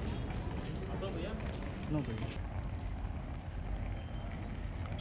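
A crowd of men and women chatters at a distance outdoors.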